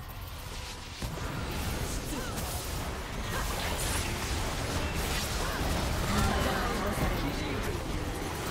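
Game spell effects whoosh and crackle in a busy fight.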